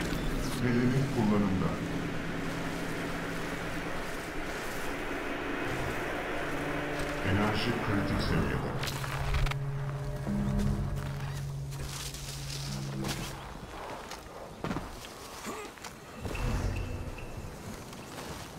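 Footsteps rustle through leaves and tall grass.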